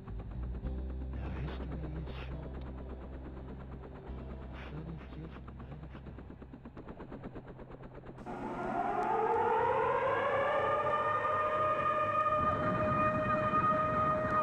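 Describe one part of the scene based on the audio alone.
An aircraft engine hums and then whines, rising in pitch.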